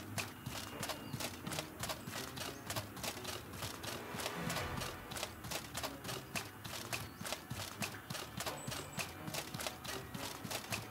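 Footsteps run quickly over stone and grass.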